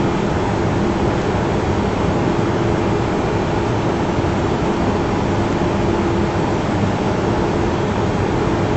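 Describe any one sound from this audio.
Jet engines drone steadily, heard from inside a cockpit.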